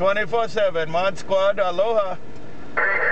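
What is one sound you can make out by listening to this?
A man talks through a radio loudspeaker with a warbling, distorted voice.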